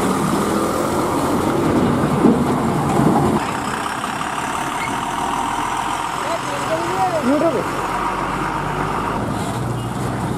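A heavy diesel tipper truck engine rumbles as the truck rolls by slowly.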